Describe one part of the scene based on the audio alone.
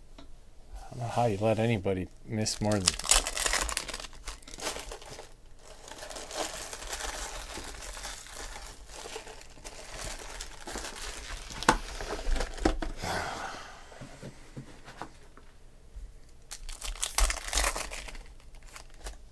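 A foil card wrapper crinkles and tears open.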